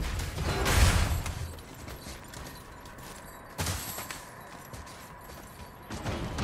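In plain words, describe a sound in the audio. Heavy armour rattles and thuds in short bursts.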